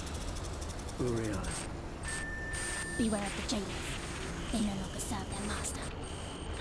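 A young woman speaks softly and shakily.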